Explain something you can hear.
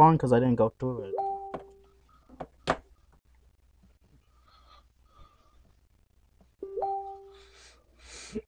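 A short electronic chime sounds as a game menu opens.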